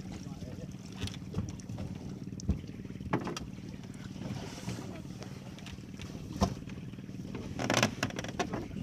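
Knocks and thumps sound on a wooden boat.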